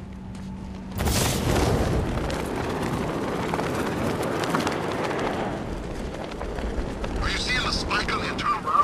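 Wind rushes loudly past during a fast dive and glide.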